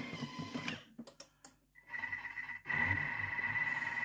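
A dial clicks as a hand turns it.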